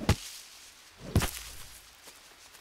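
Leaves rustle as plants are pushed aside.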